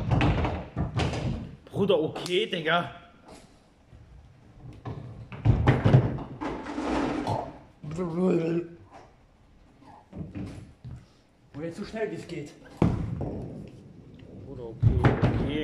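A bowling ball rolls down a wooden lane in a large echoing hall.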